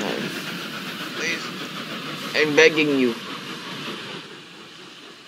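A train rumbles along the tracks.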